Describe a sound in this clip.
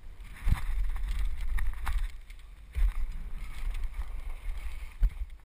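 Wind buffets a microphone in low gusty rumbles.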